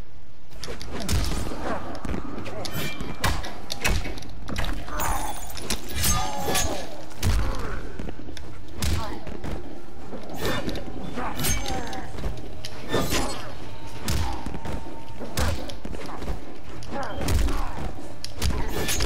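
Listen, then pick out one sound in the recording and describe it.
A man grunts and shouts as he fights.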